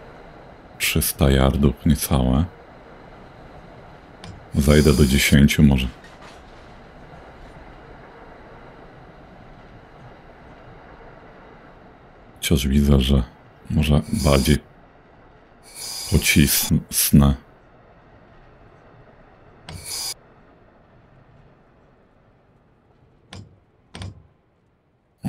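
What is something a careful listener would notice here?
A train rumbles steadily along the rails and slows to a stop.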